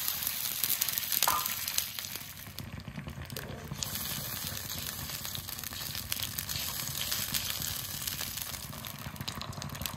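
Liquid bubbles and simmers in a pan.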